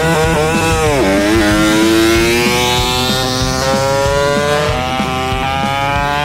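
A small racing motorcycle engine screams at high pitch as it accelerates away, the whine climbing steadily.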